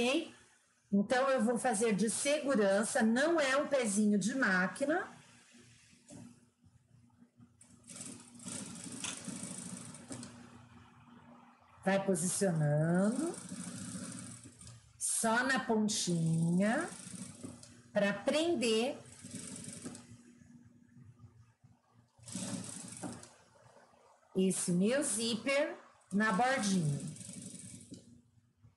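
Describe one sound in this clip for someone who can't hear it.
A sewing machine runs, stitching in steady bursts.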